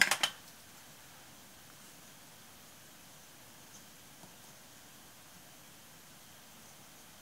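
Small metal pieces click softly as hands handle them.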